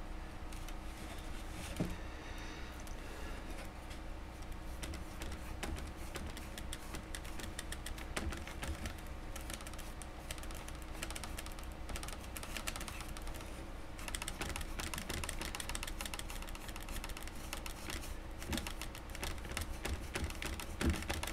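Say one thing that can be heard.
A light object scrapes and knocks softly on a tabletop as it is turned by hand.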